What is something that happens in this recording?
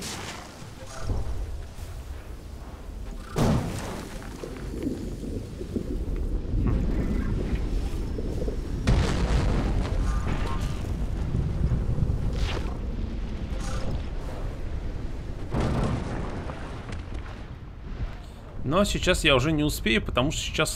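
Lava rumbles with a low, steady roar.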